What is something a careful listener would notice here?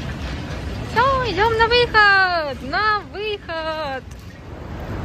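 A baby babbles and squeals.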